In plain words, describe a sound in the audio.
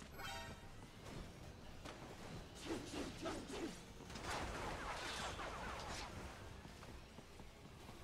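Quick whooshes and thuds sound as a fighter leaps and dashes.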